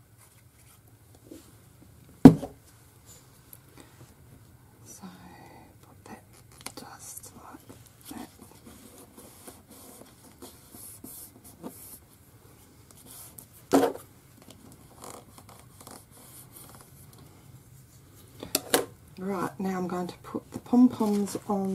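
Paper rustles and slides softly under hands.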